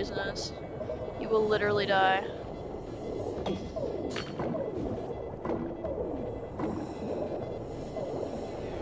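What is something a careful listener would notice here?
Bubbly electronic game sounds play throughout.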